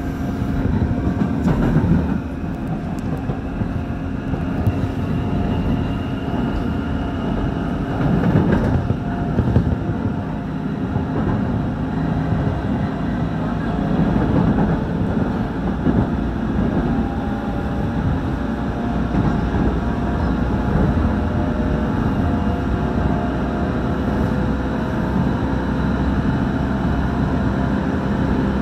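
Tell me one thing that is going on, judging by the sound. An electric commuter train rumbles along the track at speed, heard from inside a carriage.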